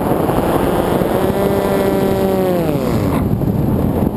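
A small motor whines and then drops in pitch.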